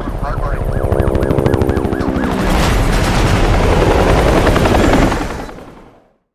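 A helicopter's rotor thumps rapidly overhead.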